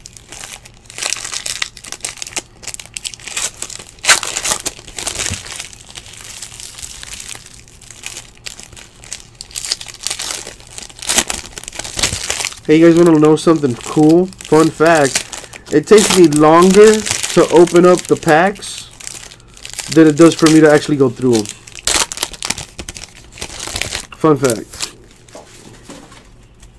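Foil wrappers crinkle and tear as hands open them.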